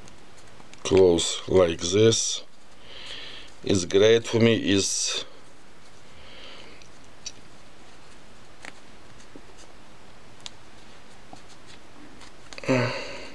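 Cord rustles softly between fingers.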